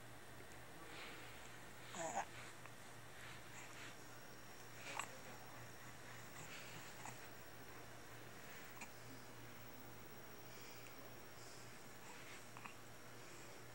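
A newborn baby coos and squeals softly up close.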